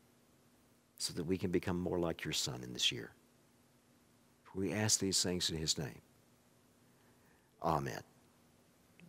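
An older man speaks with animation into a microphone, in short bursts.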